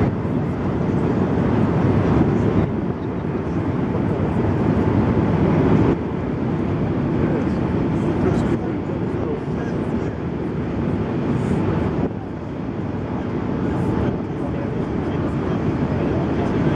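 A ferry engine rumbles steadily.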